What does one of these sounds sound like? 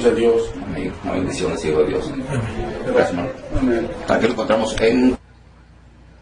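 A man speaks with animation through a microphone.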